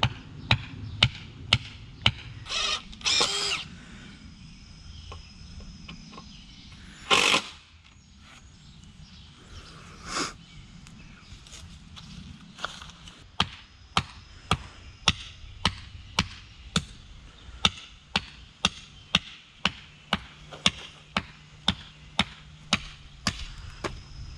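A hammer taps repeatedly on a wooden stake.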